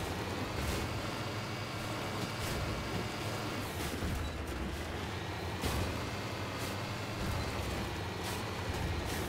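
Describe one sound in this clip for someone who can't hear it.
A vehicle engine rumbles steadily as it climbs rough ground.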